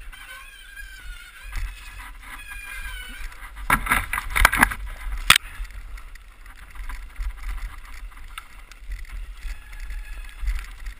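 Bicycle tyres crunch over snow on a bumpy trail.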